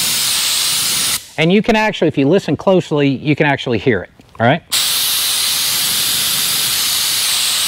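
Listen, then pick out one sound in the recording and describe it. A spray gun hisses with a steady rush of air.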